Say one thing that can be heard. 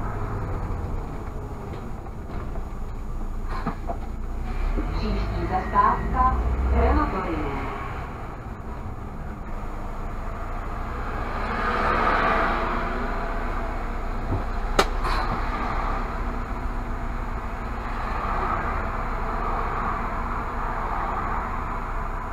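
An engine hums steadily inside a moving car.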